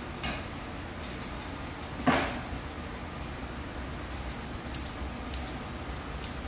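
Scissors snip through a dog's fur in short, quick cuts.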